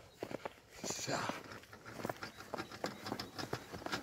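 An exercise bike whirs as someone pedals.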